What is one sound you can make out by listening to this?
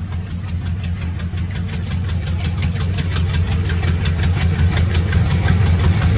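Train wheels clatter rhythmically over the rails.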